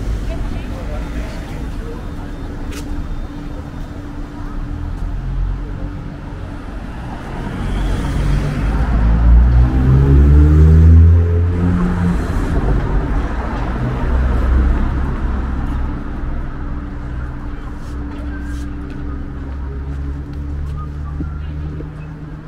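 Car engines hum as traffic drives along a city street.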